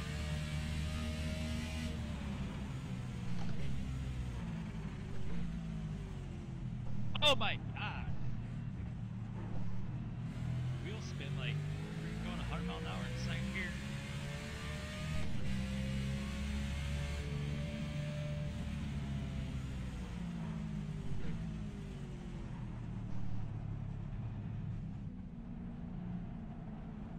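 A racing car engine roars and shifts through gears at high revs.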